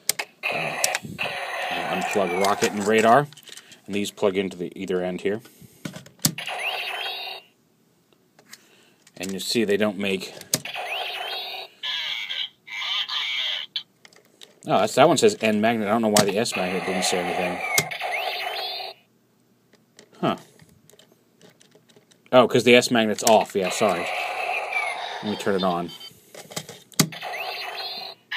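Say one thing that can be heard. A toy's small speaker plays loud electronic music and sound effects.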